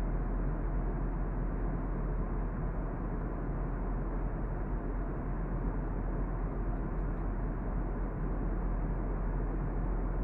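Jet engines roar steadily in a loud, low rumble inside an aircraft cabin.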